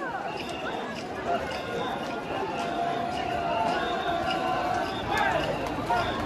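Festival bearers chant loudly in rhythm as they carry a portable shrine.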